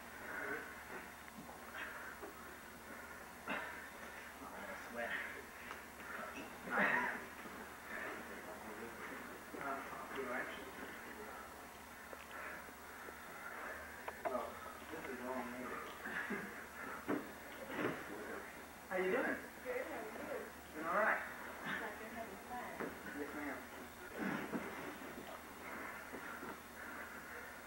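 Two people grapple and thump against a padded mat.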